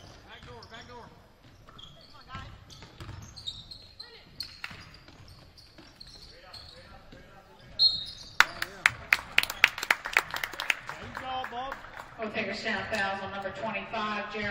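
Spectators cheer and call out in an echoing gym.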